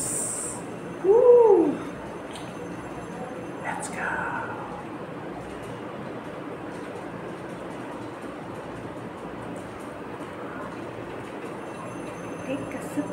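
A young woman speaks softly through a microphone.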